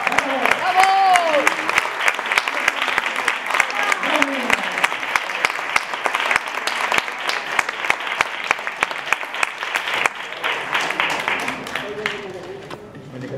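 A man strums a guitar in a fast flamenco rhythm.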